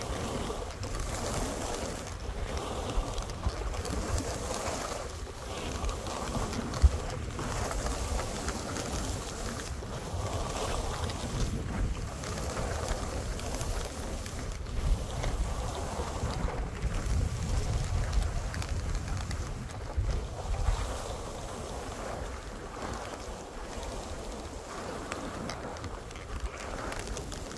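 Wind rumbles and blusters outdoors.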